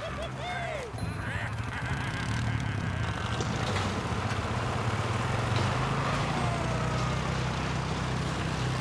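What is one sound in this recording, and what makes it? A tractor engine rumbles steadily as the tractor drives along.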